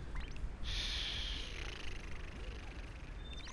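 Wind rushes past a character falling through the air.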